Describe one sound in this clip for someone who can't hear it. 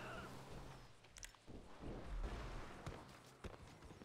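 A man jumps down and lands with a thud.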